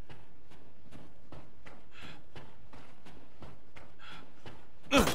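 Footsteps walk at a steady pace across a floor.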